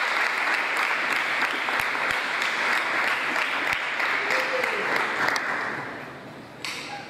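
An audience applauds loudly in a large hall, then stops.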